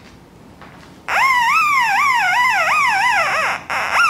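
A metal detector gives off a warbling electronic tone.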